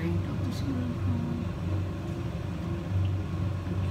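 Oil pours and trickles into a metal pan.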